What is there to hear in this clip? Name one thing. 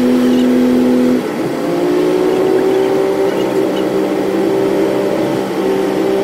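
Tyres roll over a road.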